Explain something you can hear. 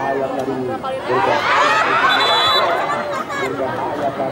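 A crowd of spectators roars loudly as players collide.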